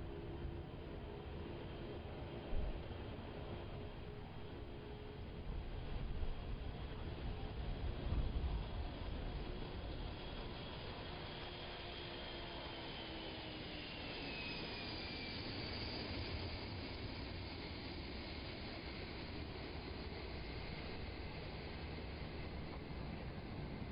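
A jet airliner's engines roar loudly as it rolls down a runway.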